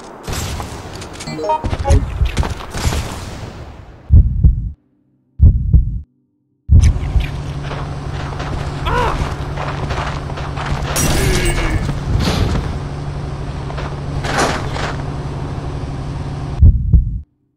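Footsteps walk on hard ground.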